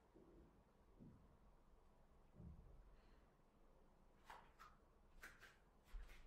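Bare feet shift softly on a mat.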